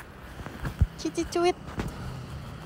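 A young woman speaks close to a phone microphone.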